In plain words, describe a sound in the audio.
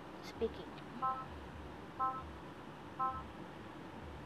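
A device beeps three times in a short countdown.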